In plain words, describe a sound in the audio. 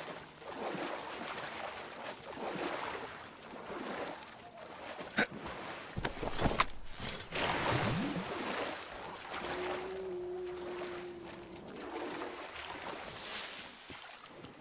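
Wind gusts and howls outdoors, rising and falling.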